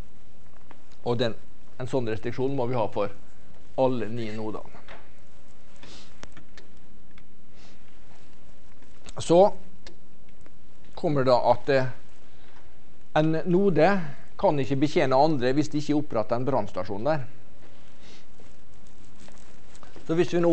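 A man lectures calmly through a microphone, with pauses.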